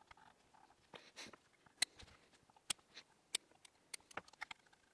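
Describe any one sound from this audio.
Scissors snip through cotton with sharp clicks.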